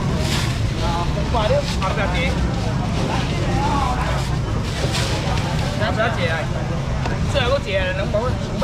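A young man shouts loudly, calling out to a crowd.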